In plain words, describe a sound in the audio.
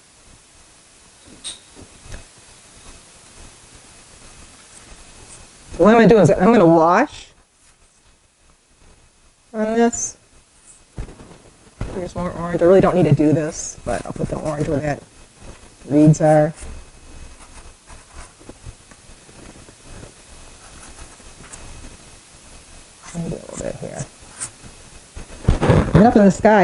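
A paintbrush dabs softly on canvas.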